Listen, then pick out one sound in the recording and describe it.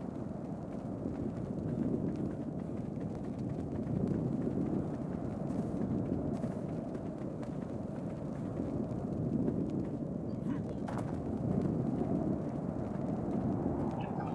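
A torch flame crackles and roars steadily.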